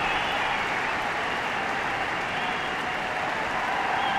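A large crowd applauds in an echoing hall.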